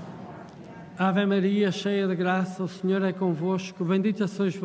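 An elderly man chants in a steady voice through a microphone.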